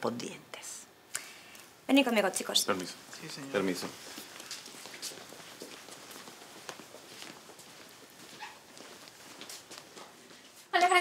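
An older woman speaks calmly nearby.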